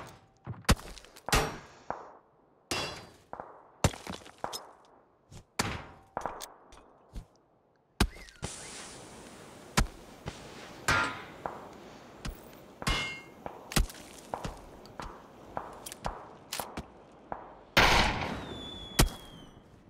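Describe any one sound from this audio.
Gunshots crack repeatedly nearby, with short echoes.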